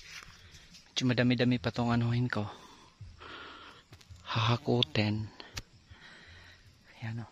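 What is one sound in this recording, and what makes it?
A man speaks close up, talking with animation.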